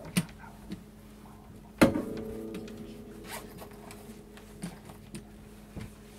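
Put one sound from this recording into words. A guitar case knocks and rustles as it is handled.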